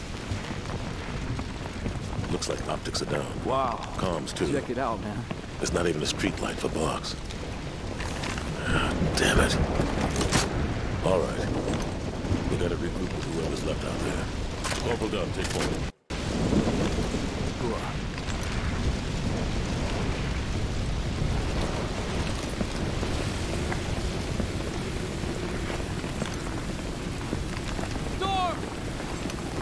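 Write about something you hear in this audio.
Fire crackles and roars nearby.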